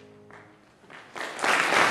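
A grand piano's last notes ring and fade away.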